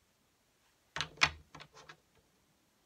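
Cards are shuffled with a short riffle.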